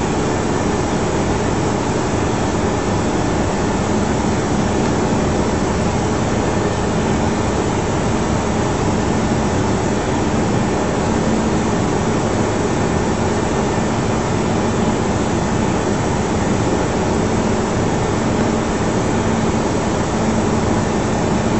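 Jet engines roar steadily, heard from inside a cockpit.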